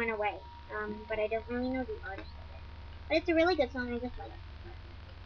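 A young girl talks close to the microphone.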